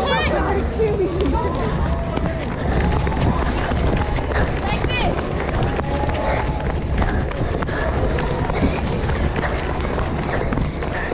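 Many running footsteps patter on pavement.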